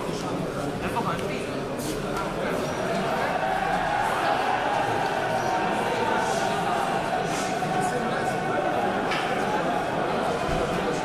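A crowd of men murmurs and chatters in a large echoing hall.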